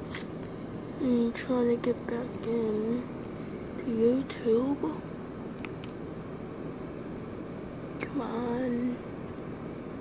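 A boy speaks close to a phone microphone in short bursts.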